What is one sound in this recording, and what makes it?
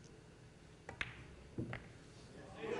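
Pool balls click together sharply.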